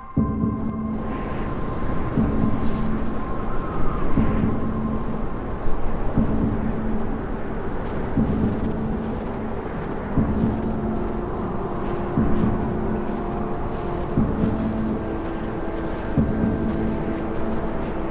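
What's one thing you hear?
Wind blows hard through a snowstorm.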